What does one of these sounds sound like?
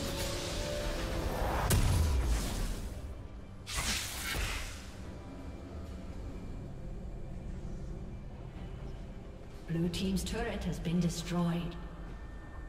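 Video game combat effects whoosh and crash in short bursts.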